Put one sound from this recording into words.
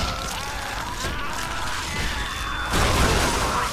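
A monster lets out a harsh, snarling screech.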